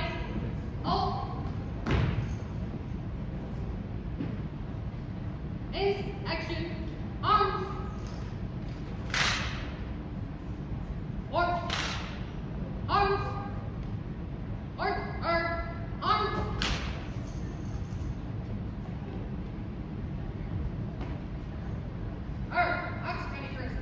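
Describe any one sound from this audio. A man shouts drill commands in a large echoing hall.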